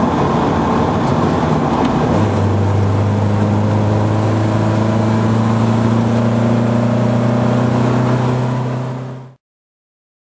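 A car engine runs with a steady, droning hum.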